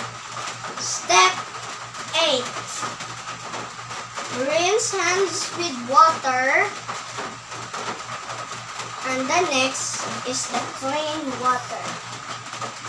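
A young girl talks with animation, close by.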